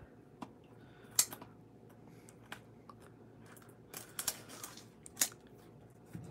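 Scissors snip through thin plastic wrap.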